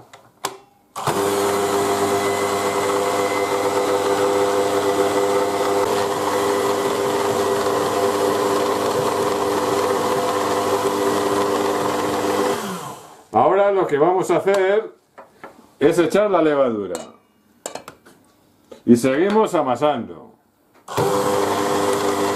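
An electric hand mixer whirs steadily as it kneads dough.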